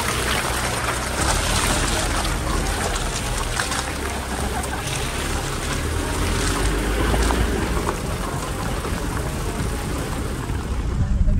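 Tyres crunch and crackle over a gravel and dirt track.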